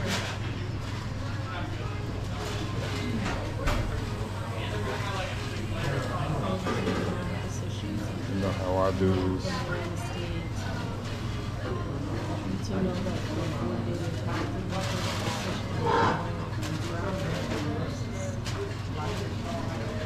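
A young woman talks on a phone nearby.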